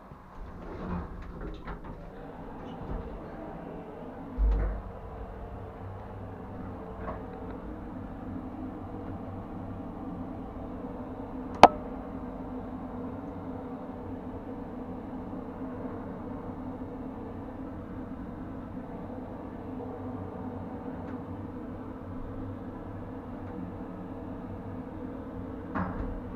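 An elevator hums steadily as it moves.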